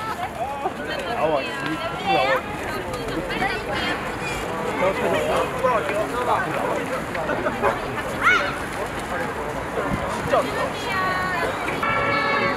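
A crowd of young people chatter excitedly nearby, outdoors.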